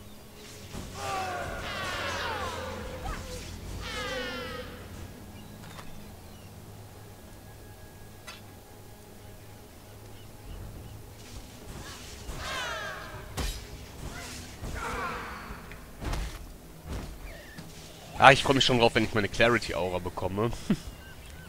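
Electric spells crackle and zap in bursts.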